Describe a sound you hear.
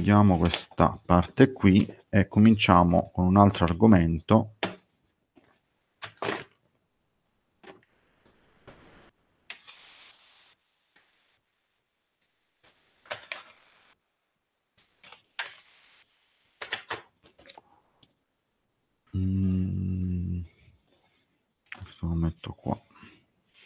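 A man speaks calmly through a microphone on an online call, with long pauses.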